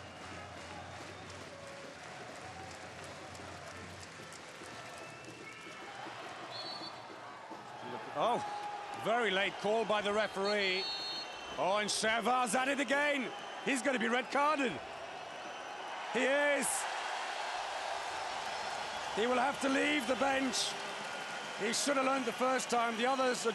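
A large crowd murmurs and cheers in an echoing arena.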